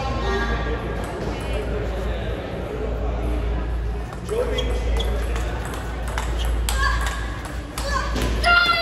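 A table tennis ball clicks off paddles and the table in a rally.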